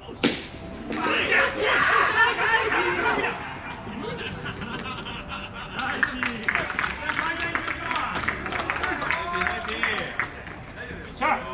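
A crowd cheers and chatters in a stadium.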